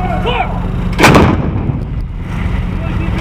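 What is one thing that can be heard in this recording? A large gun fires with a deep, booming blast.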